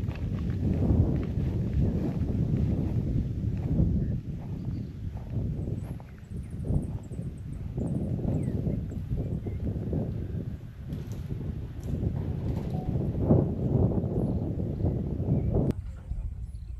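Wind gusts loudly outdoors, rumbling against the microphone.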